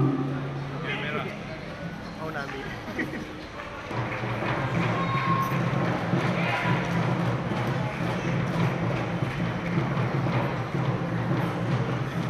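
A crowd murmurs and chatters in a large echoing hall.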